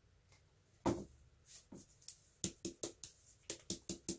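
A plastic cup is set down on a table with a light knock.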